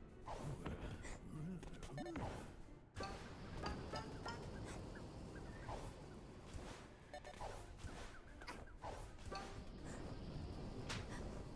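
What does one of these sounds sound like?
Cartoonish game sound effects chirp and whoosh.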